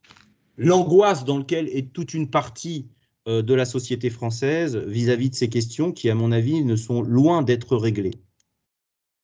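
A man speaks steadily through an online call.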